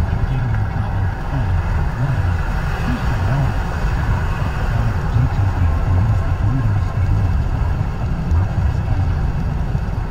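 A car's engine hums steadily at highway speed.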